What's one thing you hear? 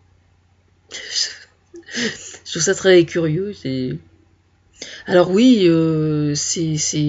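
A woman speaks close to a microphone, in short phrases with pauses.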